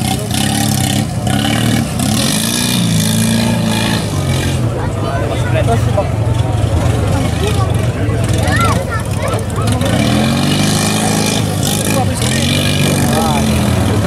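An off-road buggy engine roars and revs hard close by.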